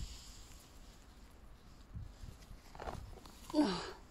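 Grass rustles as a hand pushes through it.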